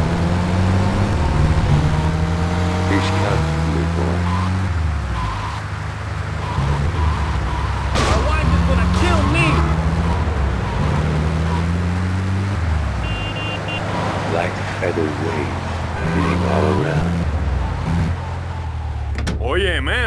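A truck engine drones and revs up through its gears.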